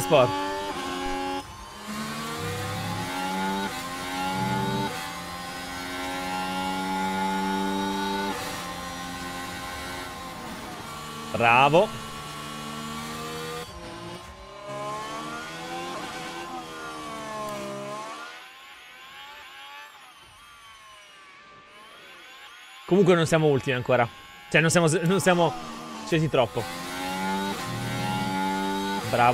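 A racing car engine roars and rises in pitch through gear changes.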